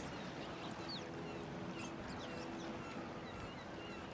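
Water laps gently nearby.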